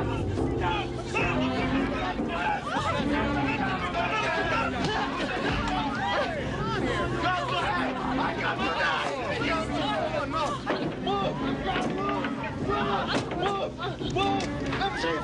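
A crowd of men and women shout and cheer excitedly all around.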